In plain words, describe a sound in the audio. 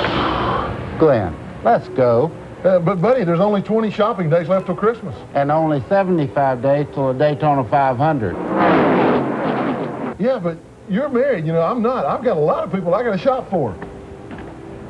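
A man talks with animation, close by.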